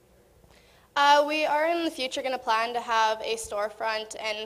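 A woman speaks clearly through a microphone in a large hall.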